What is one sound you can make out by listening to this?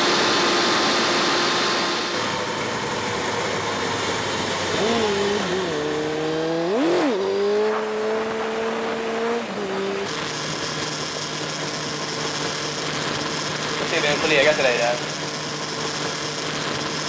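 A motorcycle engine hums and revs up and down as it rides along.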